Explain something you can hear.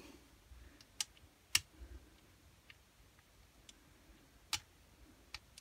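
Small plastic engine parts click faintly under handling.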